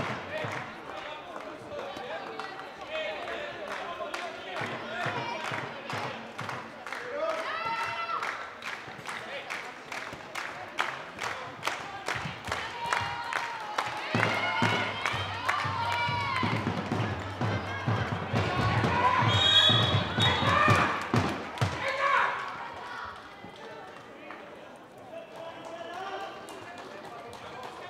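Young women shout and call out to each other across an echoing hall.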